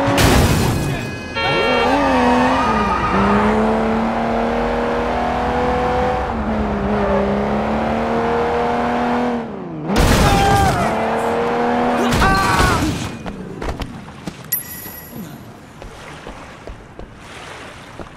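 Tyres screech on wet pavement.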